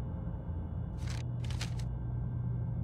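A short menu blip sounds twice.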